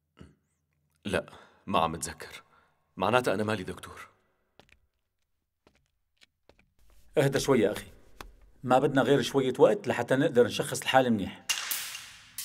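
A young man speaks quietly and tensely, close by.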